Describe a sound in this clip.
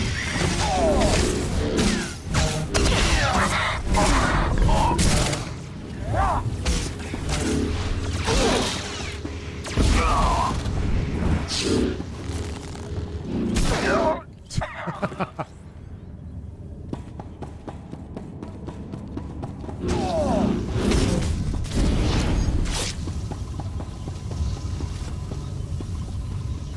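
Energy blades swoosh and clash in a fast fight.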